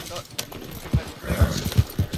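Horse hooves thud on wet ground at a gallop.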